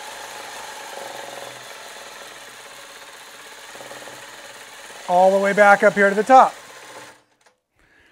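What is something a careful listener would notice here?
A sewing machine motor hums and stitches steadily.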